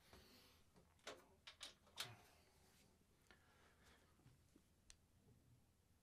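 A strap clip clicks and rattles close by.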